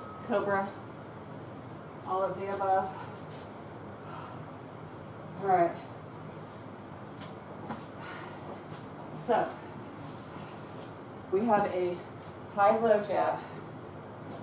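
A young woman speaks in short, breathless bursts nearby.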